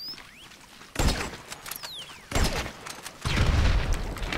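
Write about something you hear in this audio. A rifle fires loud, booming shots that echo.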